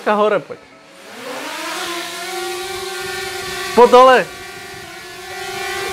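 A small drone's propellers whir in a steady high buzz.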